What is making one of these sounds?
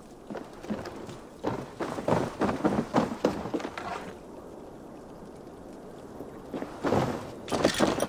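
Footsteps thump on wooden boards.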